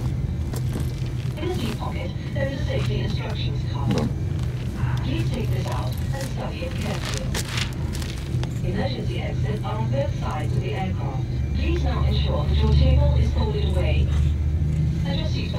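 An elderly man talks calmly nearby.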